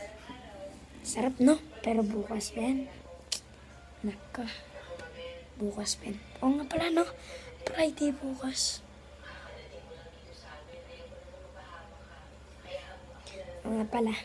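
A young boy talks with animation close to a phone microphone.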